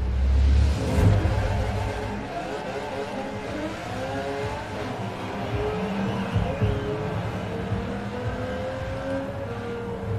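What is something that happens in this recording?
A race car engine roars and climbs steadily in pitch as it speeds up.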